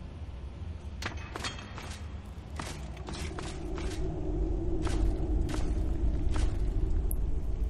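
Footsteps thud on stone floor.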